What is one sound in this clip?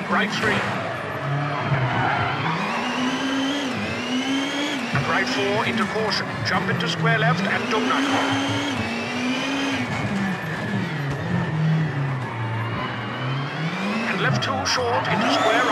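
A racing car engine revs up and down as gears shift.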